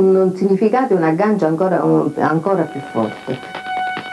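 An elderly woman speaks calmly and closely.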